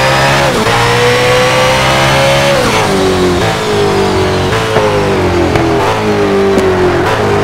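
A racing car engine roars at high revs, shifting gears and dropping in pitch as it slows.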